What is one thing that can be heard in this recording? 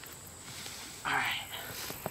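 Grass rustles sharply close by.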